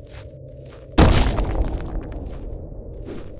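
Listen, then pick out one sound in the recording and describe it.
A loud, sudden crash rings out and slowly dies away.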